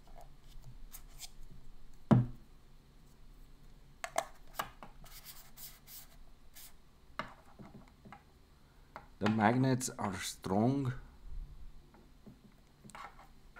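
A small ring mount clicks and snaps as fingers flip it open and shut.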